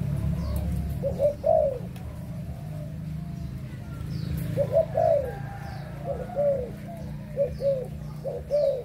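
A caged bird calls in short, repeated low hooting coos close by.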